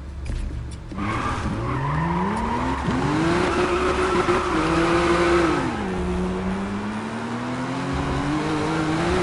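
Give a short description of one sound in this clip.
A car engine revs up and roars, rising and falling in pitch as gears change.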